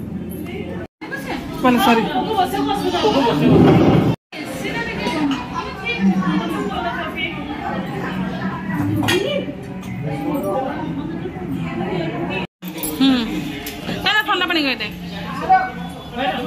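Several people chat around a table in a busy room.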